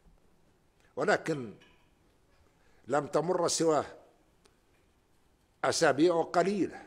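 An elderly man speaks formally and deliberately into a microphone, with pauses between phrases.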